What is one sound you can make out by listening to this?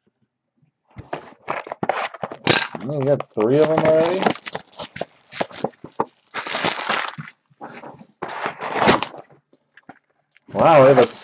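A cardboard box is knocked and shuffled across a table.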